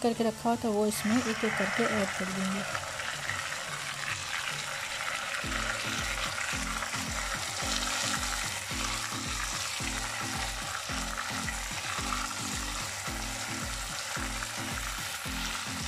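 Oil sizzles and crackles in a hot pan.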